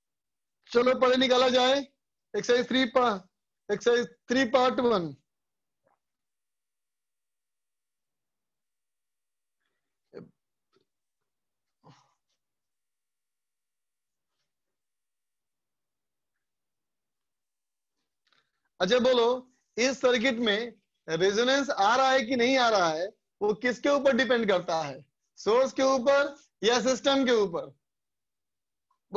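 A man speaks clearly and calmly into a close microphone, with a long pause.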